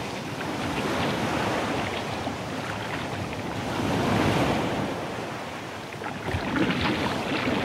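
Choppy waves slap against kayak hulls.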